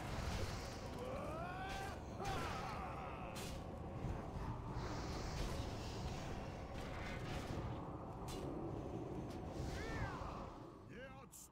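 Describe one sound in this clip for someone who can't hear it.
Fantasy battle effects rumble, crackle and whoosh loudly.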